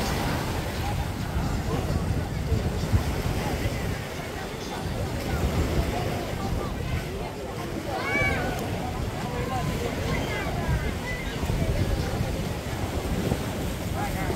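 A crowd of people chatters on a beach outdoors.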